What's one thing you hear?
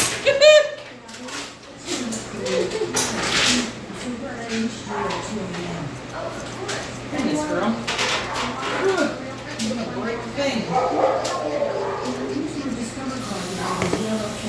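A small dog pants.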